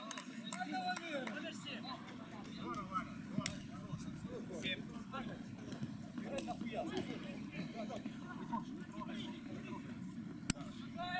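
Several men talk and call out nearby, outdoors.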